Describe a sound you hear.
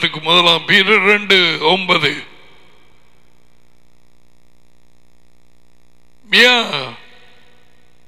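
A middle-aged man speaks expressively into a headset microphone, close up.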